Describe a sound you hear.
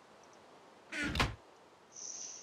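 A wooden chest thuds shut.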